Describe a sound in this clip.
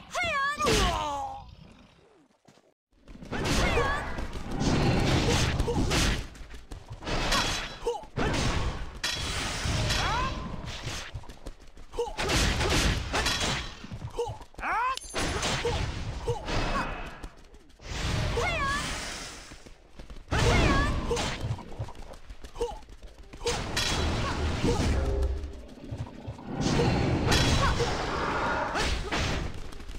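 Magic spells whoosh, crackle and burst in a fast battle.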